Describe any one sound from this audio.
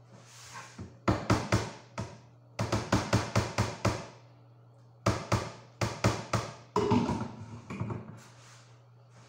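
A metal lid clanks against a pot.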